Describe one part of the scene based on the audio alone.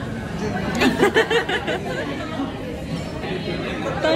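A young woman talks cheerfully and laughs close to the microphone.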